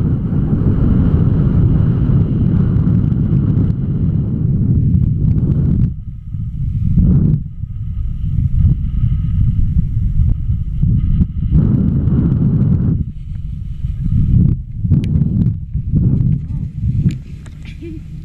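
Wind rushes loudly past in strong gusts.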